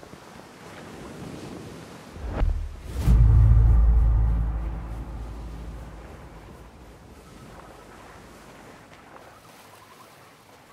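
Footsteps run over the ground.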